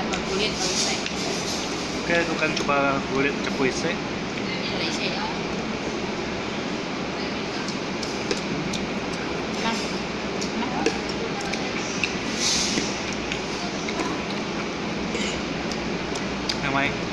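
Cutlery clinks against a plate.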